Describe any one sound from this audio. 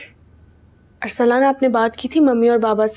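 A young woman speaks close by in a troubled tone.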